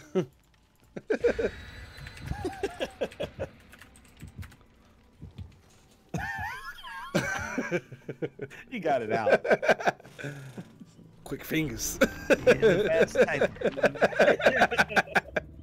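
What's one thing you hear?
A young man talks and laughs with animation into a close microphone.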